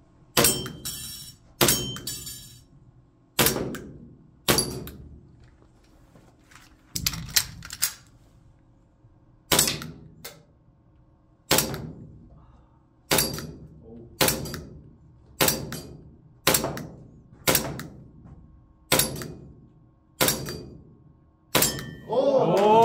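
A pistol fires single shots that ring out in an echoing room.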